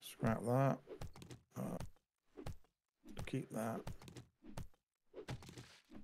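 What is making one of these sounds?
A heavy blow thuds into soft padding.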